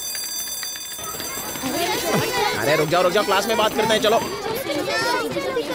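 Children shout and chatter as they run.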